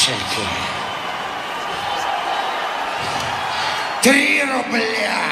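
A large crowd cheers and roars in a big hall.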